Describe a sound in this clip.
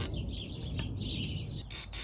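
Pliers snip a cable tie with a sharp click.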